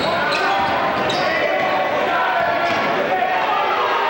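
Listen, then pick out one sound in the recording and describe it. A basketball thumps as it is dribbled on the floor.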